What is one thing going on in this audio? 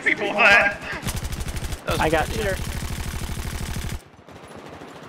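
A rifle fires rapid bursts of shots nearby.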